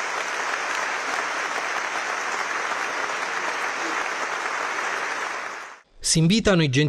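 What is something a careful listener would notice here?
A large crowd applauds steadily in a big hall.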